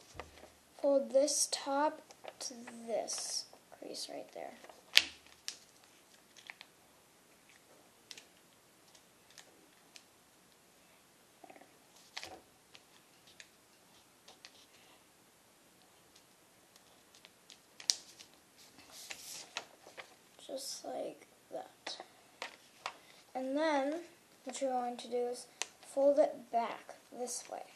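Hands fold and crease a sheet of paper, which rustles and crinkles.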